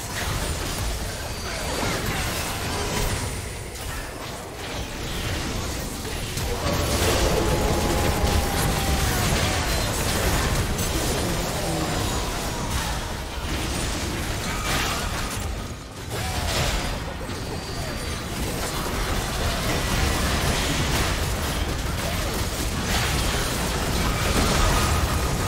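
Magic spells crackle and burst in a busy fantasy battle.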